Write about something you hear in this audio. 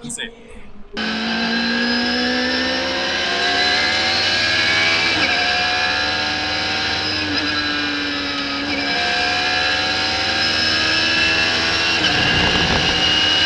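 A race car engine roars at high revs and shifts through gears.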